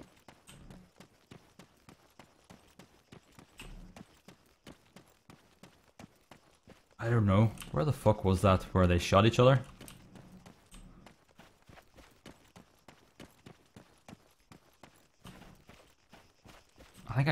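Footsteps crunch steadily on dry, stony ground.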